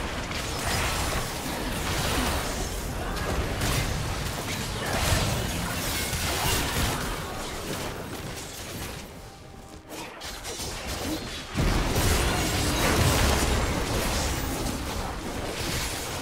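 Magic blasts and clashing weapons crackle and burst in a fast game battle.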